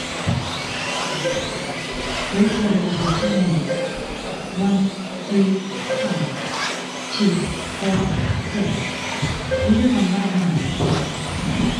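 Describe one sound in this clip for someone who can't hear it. Small electric model cars whine and buzz, rising and falling in pitch as they race around an indoor track.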